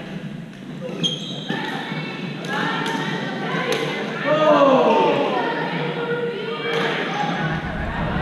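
Shoes squeak on the gym floor.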